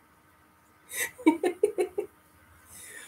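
A middle-aged woman laughs softly close to the microphone.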